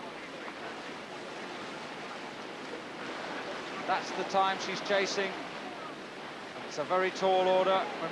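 White water rushes and churns steadily.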